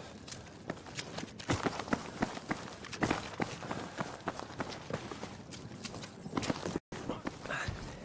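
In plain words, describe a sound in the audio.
Footsteps crunch through snow at a steady pace.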